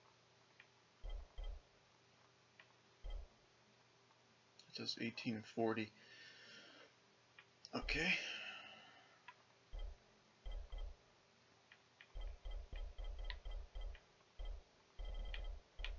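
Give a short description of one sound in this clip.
Short menu clicks tick as a selection moves through a list.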